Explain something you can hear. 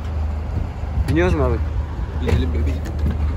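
A young man talks loudly close by.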